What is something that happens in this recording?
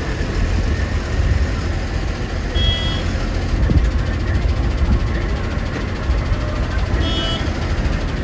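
Traffic passes by on a busy road.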